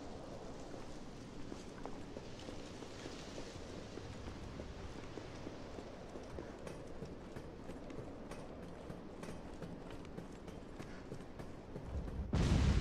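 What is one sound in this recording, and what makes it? Footsteps tap on hard ground.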